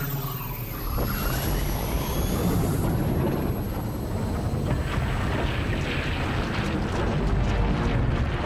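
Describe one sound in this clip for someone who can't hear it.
A flying craft's engines roar steadily.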